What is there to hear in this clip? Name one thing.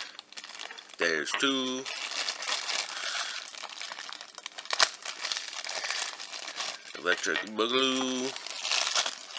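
Thin plastic wrapping crinkles and rustles close by.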